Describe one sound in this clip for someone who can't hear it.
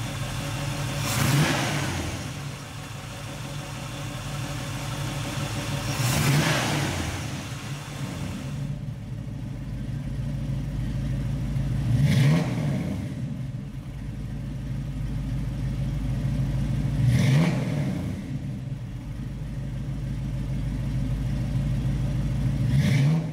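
A car engine revs up sharply and settles back, again and again.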